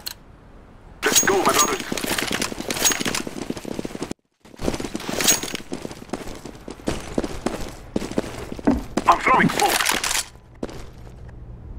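Footsteps run quickly over hard floors.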